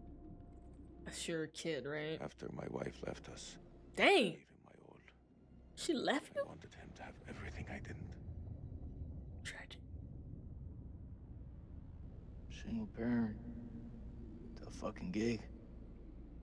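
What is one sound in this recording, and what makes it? A young woman speaks with animation into a headset microphone, close by.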